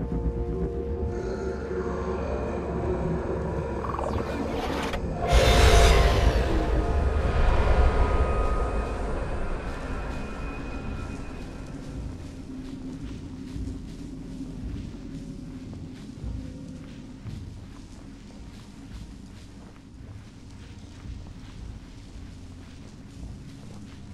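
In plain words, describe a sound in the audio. Soft footsteps patter over damp ground.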